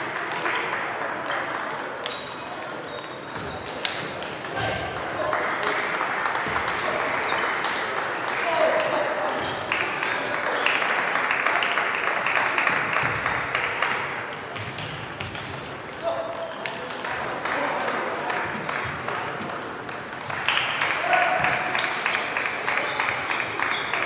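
A crowd of people murmurs in a large echoing hall.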